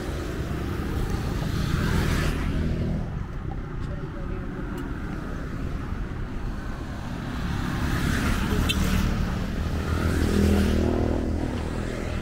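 Cars swish past on the road, swelling and fading.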